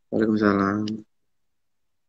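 A young man speaks briefly and calmly, close to a phone microphone.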